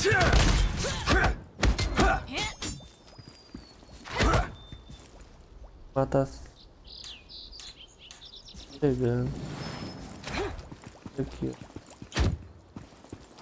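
Sword strikes and spell blasts hit in bursts.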